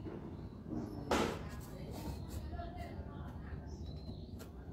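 A knife scrapes against a plastic tray.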